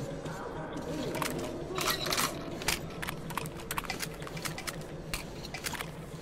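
A gun's mechanism clicks as it is handled.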